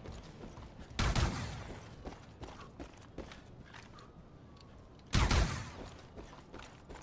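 A shotgun fires with a loud, booming blast that echoes away.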